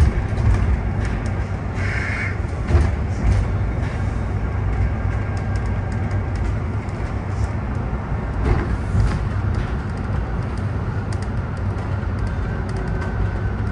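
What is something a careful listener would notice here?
The bus body rattles and clicks over the road.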